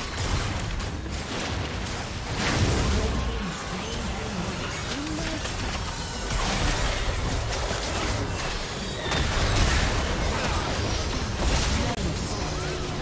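Magic blasts and hits crash and whoosh in a busy video game battle.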